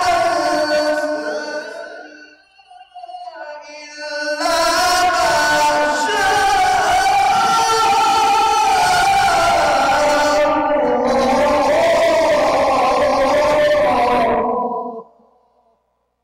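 A man chants a long melodic recitation into a microphone, with an echo from a large hall.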